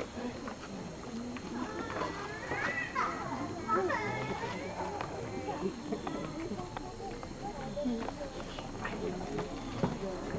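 Young women talk quietly nearby.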